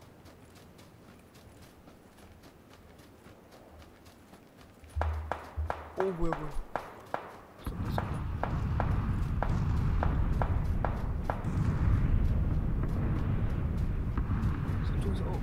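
Footsteps run quickly over grass and earth.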